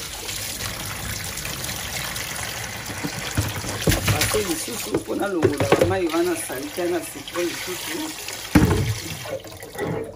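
Water runs from a tap into a basin.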